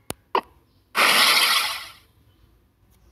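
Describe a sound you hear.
A game menu whooshes as a panel slides open.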